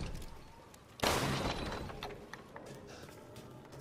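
A pistol fires once.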